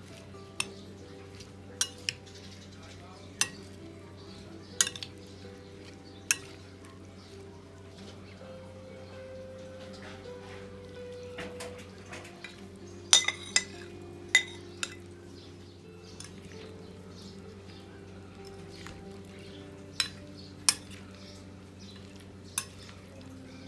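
A metal spoon clinks against a plate.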